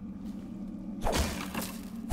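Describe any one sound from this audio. A metal blade swishes through the air.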